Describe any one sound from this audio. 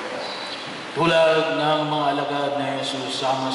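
A group of people sings together in an echoing hall.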